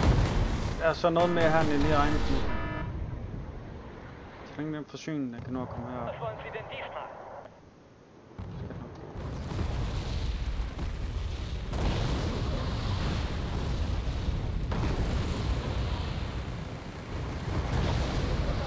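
Artillery shells burst with deep, rumbling booms.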